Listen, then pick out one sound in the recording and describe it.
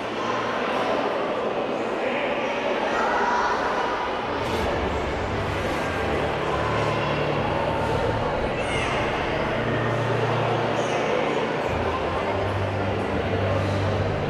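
Many children murmur and chatter in a large echoing hall.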